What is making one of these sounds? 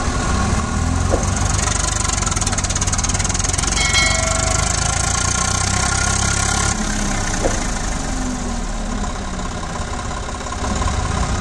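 Tractor tyres churn and splash through thick mud.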